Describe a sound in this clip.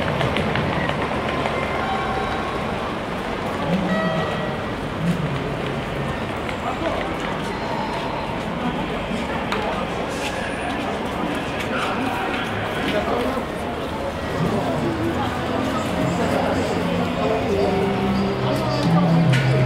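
City traffic hums steadily in the distance outdoors.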